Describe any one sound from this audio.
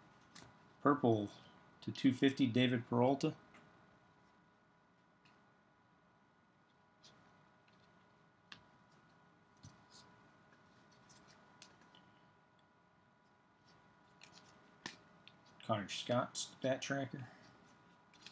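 Trading cards slide and click softly as they are shuffled by hand.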